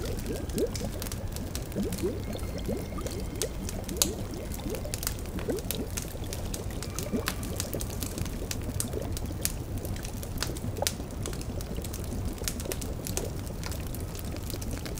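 A fire crackles and pops steadily.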